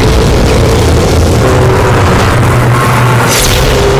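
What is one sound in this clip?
Laser beams fire with a harsh buzzing blast.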